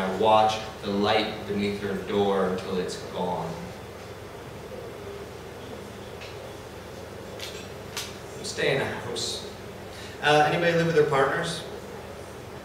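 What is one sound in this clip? A man speaks calmly into a microphone, close up, with pauses.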